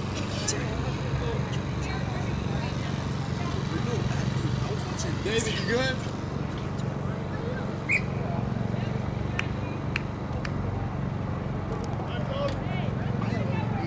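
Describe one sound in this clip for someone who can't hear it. Young women call out to each other in the distance.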